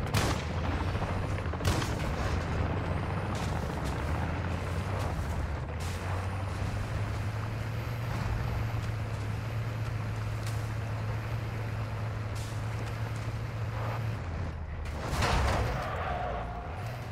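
Tyres crunch over sand and dirt.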